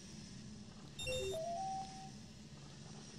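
A short rising chime rings out.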